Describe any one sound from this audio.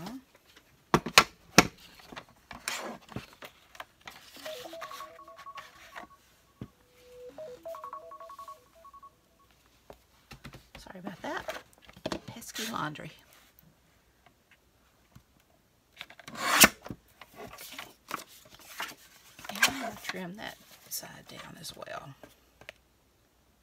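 Paper rustles and slides across a plastic board.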